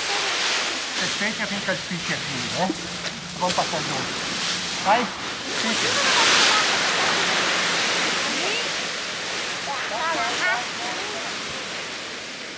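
Rakes scrape and rustle through dry leaves.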